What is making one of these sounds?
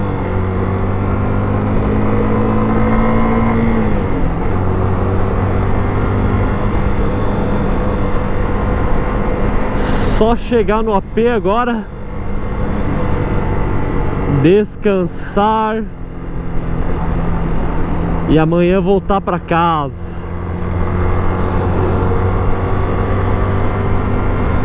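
Wind rushes past a motorcycle rider.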